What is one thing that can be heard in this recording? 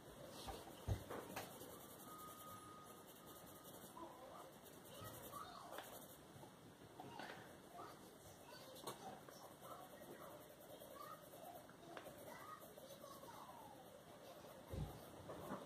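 A coloured pencil scratches softly on paper in quick strokes.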